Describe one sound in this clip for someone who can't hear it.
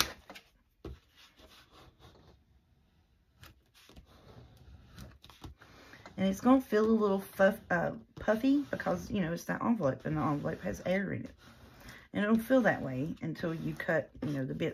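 A pad rubs and scrapes over paper.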